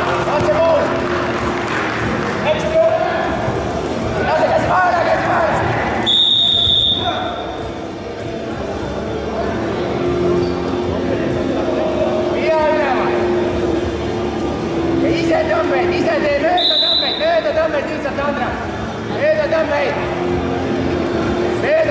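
Men shout loudly in a large echoing hall.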